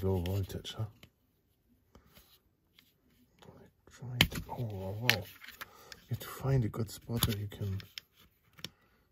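A plastic casing clicks and snaps as it is pried open.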